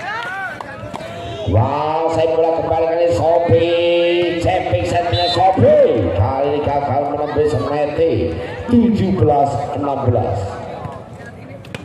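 A crowd cheers and chants loudly outdoors.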